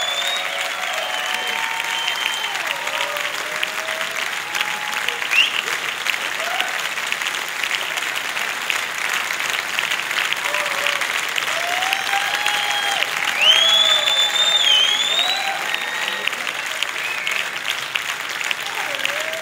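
A violin plays sliding melodic lines.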